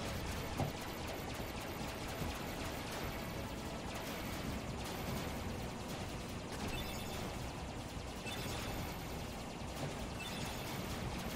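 Laser blasts fire rapidly from a video game.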